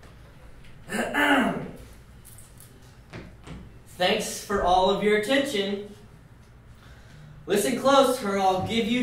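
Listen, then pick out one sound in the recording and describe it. A young man reads aloud.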